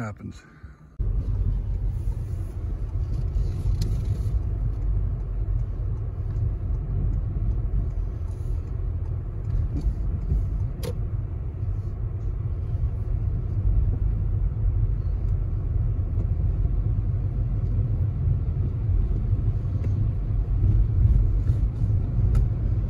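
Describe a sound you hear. A car drives along with a steady low road rumble, heard from inside.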